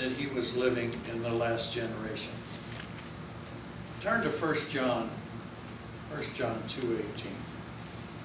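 An elderly man speaks slowly and calmly into a microphone, heard through loudspeakers in an echoing room.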